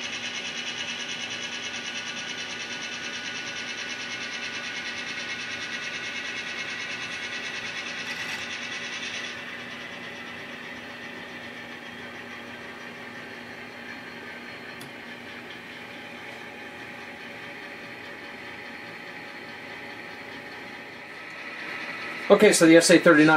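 An N-scale model freight train rolls along the track with a faint electric motor whine.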